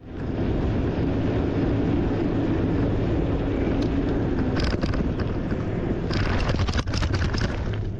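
Wind rumbles loudly into a microphone.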